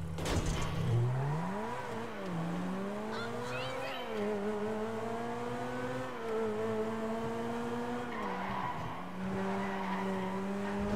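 A car engine revs up and changes pitch as it speeds along.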